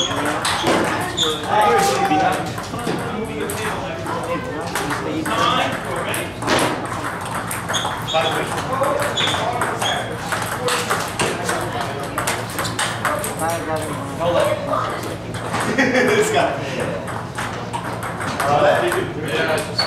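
Table tennis balls click sharply off paddles and tables in quick rallies.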